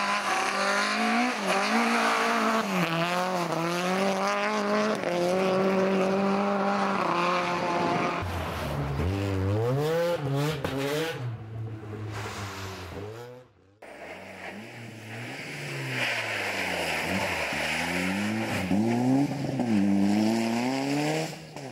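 A rally car engine revs hard and whines through the gears.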